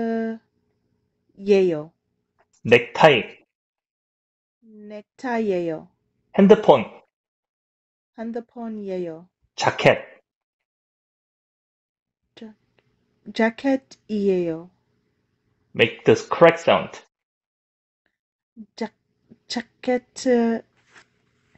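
A woman speaks with animation over an online call, in short bursts with pauses.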